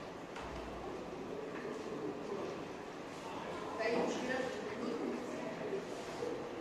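A woman lectures calmly and clearly, close by.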